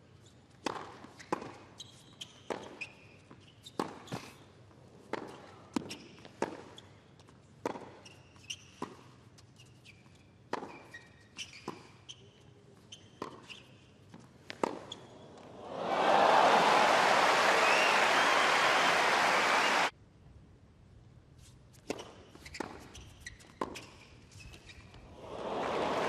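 Tennis balls are struck back and forth in a quick, sharp rally.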